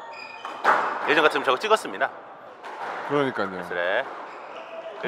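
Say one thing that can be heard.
A young man talks with animation in a large echoing room.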